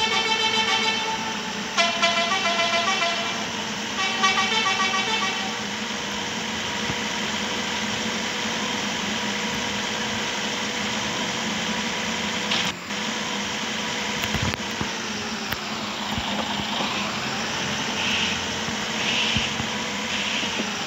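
A bus engine hums steadily as the bus drives along.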